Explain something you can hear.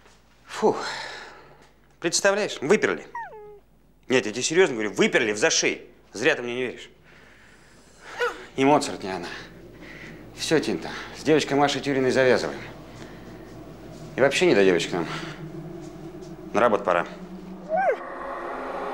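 A middle-aged man speaks calmly and close by, with pauses.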